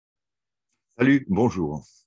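An elderly man speaks briefly over an online call.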